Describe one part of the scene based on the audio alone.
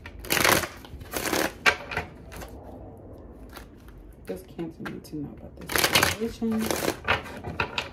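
Cards shuffle and riffle in hands close by.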